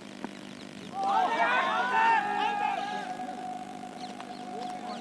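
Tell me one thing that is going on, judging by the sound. Young men shout in appeal across an open field.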